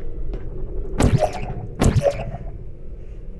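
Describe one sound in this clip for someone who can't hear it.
A game gun fires two sharp, buzzing electronic shots.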